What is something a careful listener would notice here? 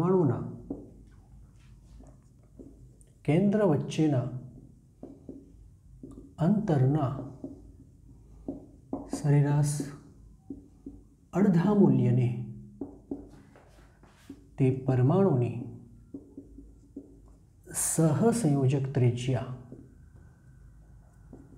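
A man speaks calmly and slowly in short bursts, close by.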